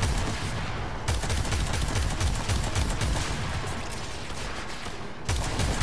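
A heavy weapon fires rapid booming shots.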